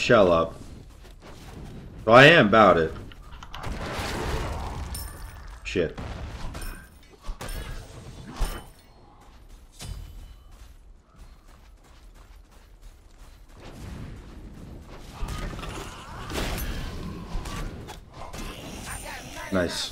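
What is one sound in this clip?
Weapons strike and magic blasts crackle in a fight.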